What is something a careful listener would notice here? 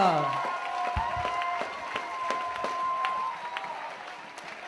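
A group of young women clap their hands.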